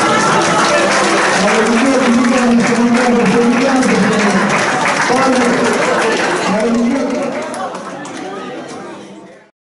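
Many men and women chatter loudly around tables in a busy room.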